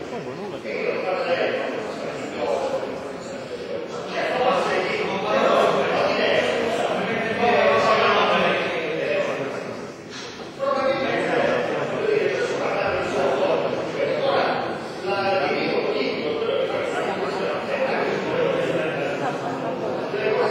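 A man speaks loudly and with animation in a large echoing hall.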